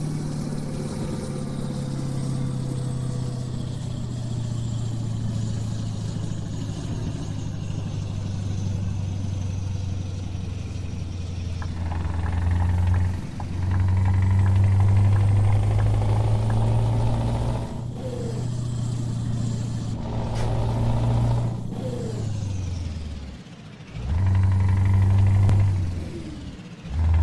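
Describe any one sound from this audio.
A truck's diesel engine drones steadily, rising and falling as it speeds up and slows down.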